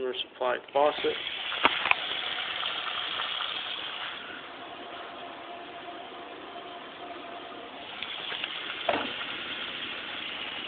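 Water runs from a tap and splashes into a metal sink.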